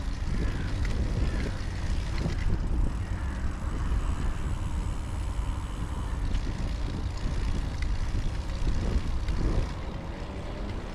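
Bicycle tyres roll steadily over smooth pavement.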